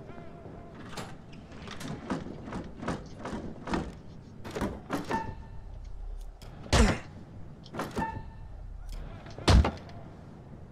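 Fists thump against a wooden training dummy.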